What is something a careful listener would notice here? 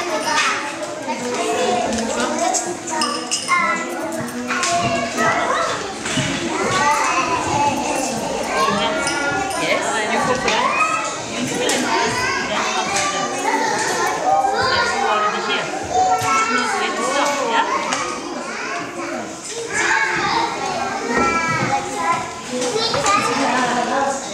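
A young girl talks quietly to herself close by.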